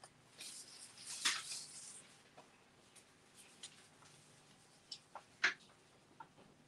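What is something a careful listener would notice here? Paper crinkles and rustles as hands handle it.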